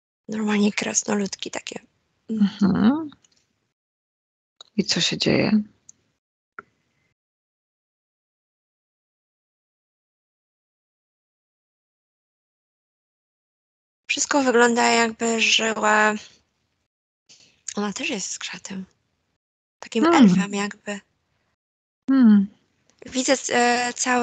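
A middle-aged woman speaks calmly into a headset microphone, heard through an online call.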